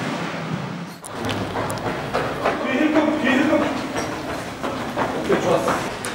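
Footsteps run on pavement in an echoing tunnel.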